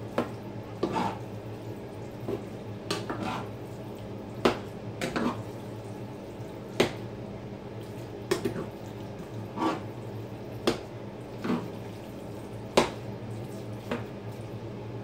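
A wooden spoon knocks and scrapes against a metal pot.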